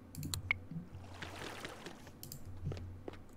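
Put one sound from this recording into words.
Water pours onto pots of soil.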